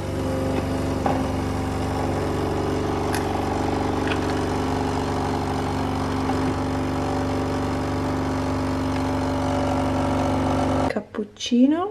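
A coffee machine hums and whirs steadily as it pours coffee.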